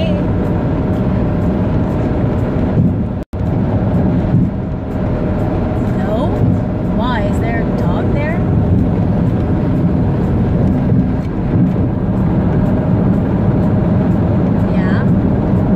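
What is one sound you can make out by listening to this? A young woman talks on a phone with animation.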